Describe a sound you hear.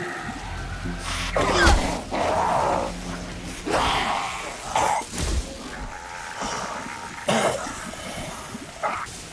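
Electricity crackles and buzzes in sharp bursts.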